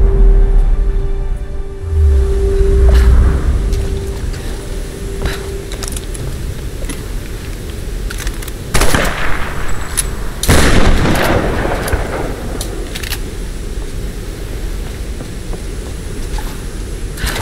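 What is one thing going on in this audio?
Water rushes steadily nearby.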